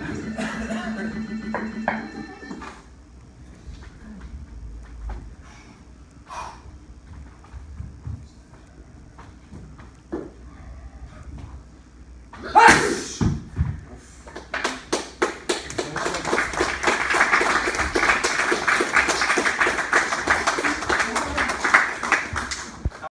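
Bare feet shuffle and thump on a wooden floor in an echoing hall.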